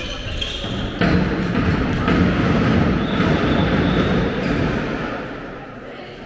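A crowd of spectators cheers loudly in a large echoing hall.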